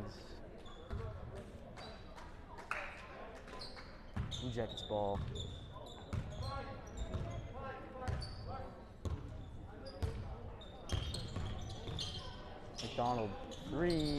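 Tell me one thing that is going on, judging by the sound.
A basketball bounces on a hard wooden court.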